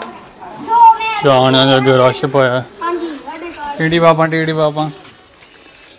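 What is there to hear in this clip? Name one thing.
Children chatter nearby.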